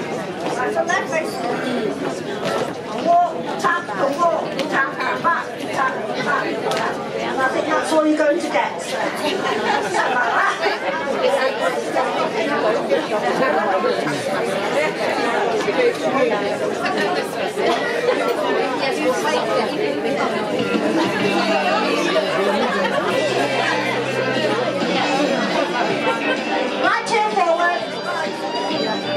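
An elderly woman calls out through a microphone over a loudspeaker.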